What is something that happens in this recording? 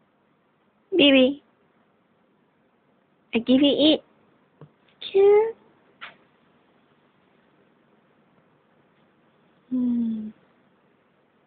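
A small dog howls and whines in short bursts close by.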